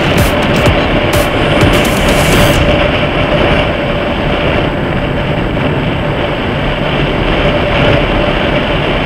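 A car engine hums steadily while driving at speed.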